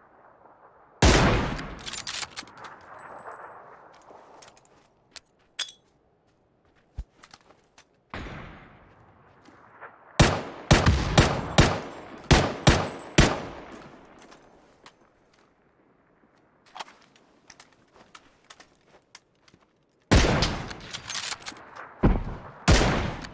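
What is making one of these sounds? Rifle shots crack loudly, one after another, with echoes trailing off.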